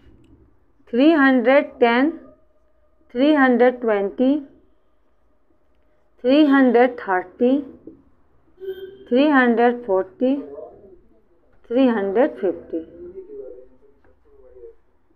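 A young woman speaks clearly and at a measured pace into a close microphone, pausing between phrases.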